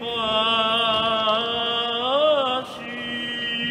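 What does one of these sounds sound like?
An elderly man chants into a microphone in a large echoing hall.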